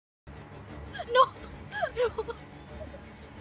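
A young woman cries out in distress close by.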